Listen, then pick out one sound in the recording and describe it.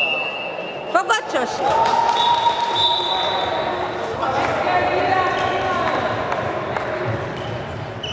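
Young girls call out to each other across the hall.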